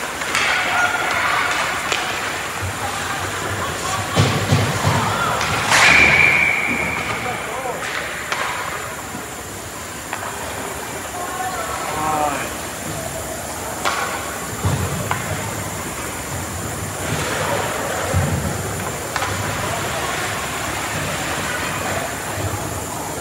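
Skates scrape and hiss on ice in a large echoing rink.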